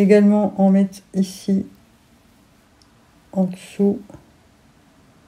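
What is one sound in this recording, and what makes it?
A woman talks calmly close to a microphone.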